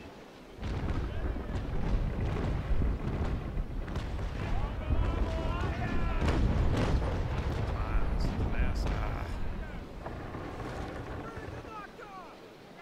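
Cannons boom in rapid heavy volleys.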